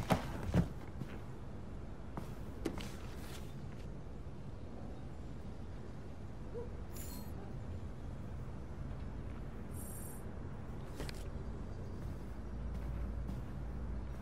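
Footsteps cross a carpeted floor.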